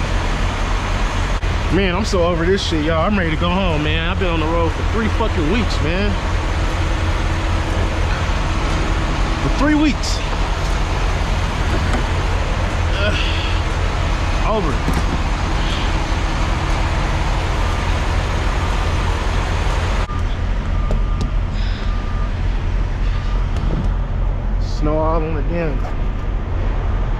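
A large diesel engine idles nearby with a steady low rumble.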